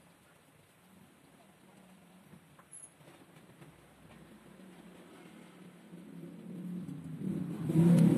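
A compass point scrapes as it draws circles on wood.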